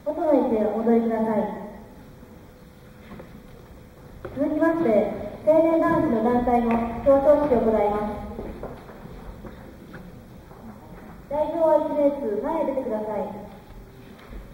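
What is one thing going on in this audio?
A man announces through a loudspeaker in a large echoing hall.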